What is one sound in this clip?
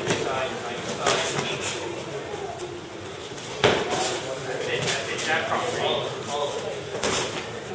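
Boxing gloves thud against pads and bodies in sharp slaps.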